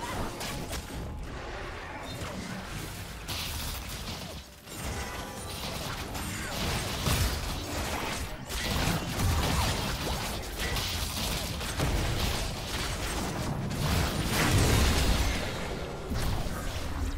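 Magic blasts and strikes crackle and thump in a fast fight.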